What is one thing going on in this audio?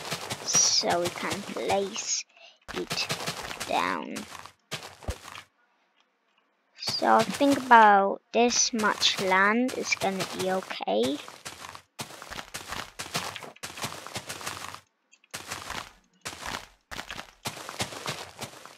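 Footsteps thud softly on grass.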